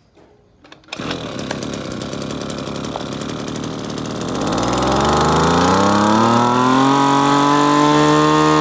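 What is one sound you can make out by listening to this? A small petrol engine starts, idles and then revs up to a high whine.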